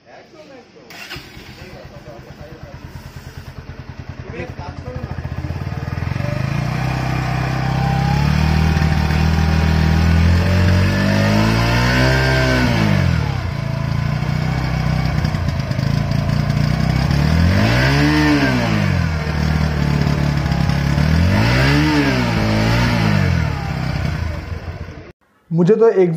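A motorcycle engine starts and idles with a steady, throbbing rumble.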